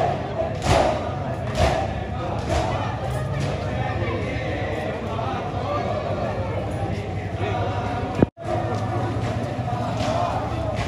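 A large crowd chants and calls out loudly outdoors.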